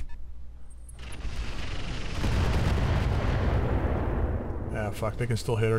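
An explosion roars and then rumbles away.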